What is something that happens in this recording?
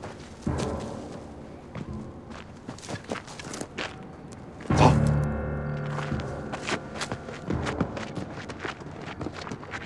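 Footsteps run over dirt.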